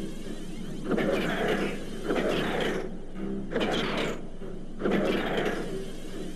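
Laser weapons fire in short bursts.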